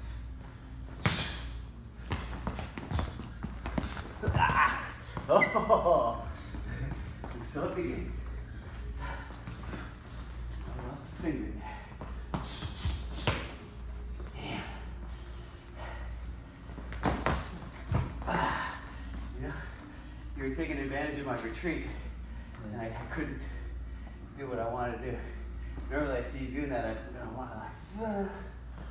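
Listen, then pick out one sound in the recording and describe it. Shoes scuff and thump on a wooden floor.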